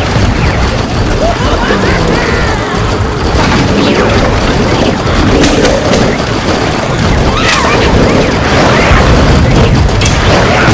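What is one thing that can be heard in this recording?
Cartoonish video game effects pop, zap and burst in quick succession.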